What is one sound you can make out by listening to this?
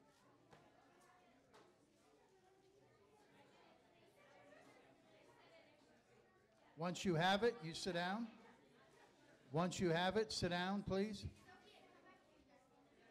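Children chatter quietly in the background.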